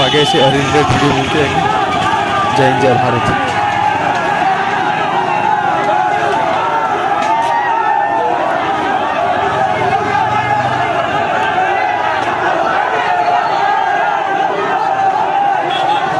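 A large crowd of young men chants and shouts together outdoors.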